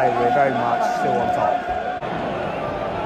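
A young man shouts close by.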